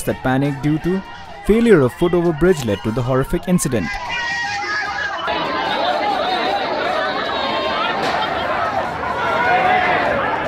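A crowd of men shouts and clamours close by.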